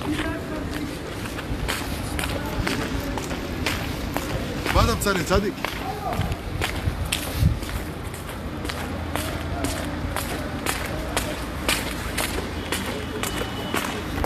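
Footsteps splash on wet stone paving.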